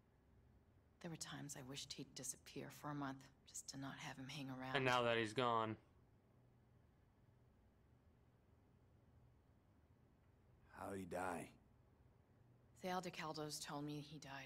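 A young woman speaks.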